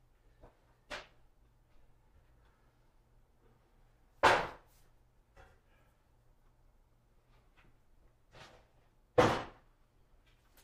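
Stacks of paper thump down onto a table.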